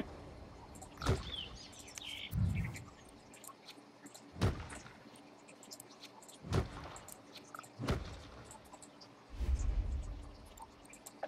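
Soft thuds and whooshes sound as rows of trees are placed one after another.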